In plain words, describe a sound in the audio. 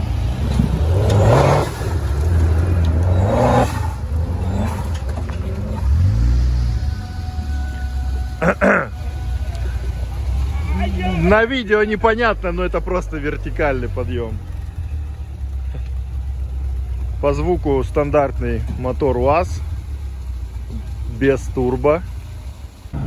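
An off-road vehicle's engine rumbles and revs as it climbs over rough ground.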